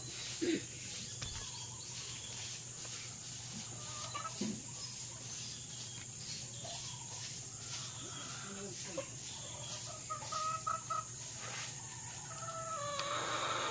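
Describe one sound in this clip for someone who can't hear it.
Hens cluck softly.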